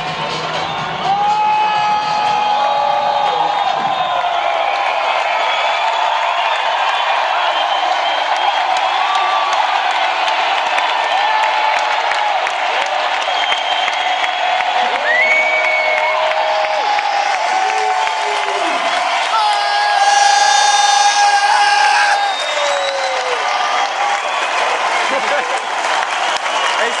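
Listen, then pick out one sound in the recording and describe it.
A large crowd cheers, screams and whistles in a big echoing hall.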